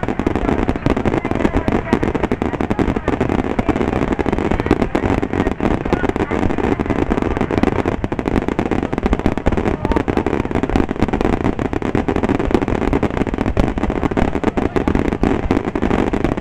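Fireworks crackle and pop rapidly and continuously.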